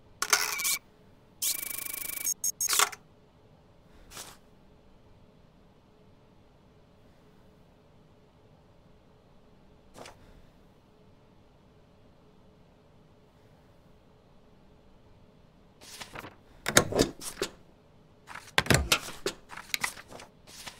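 Paper documents slide and rustle across a desk.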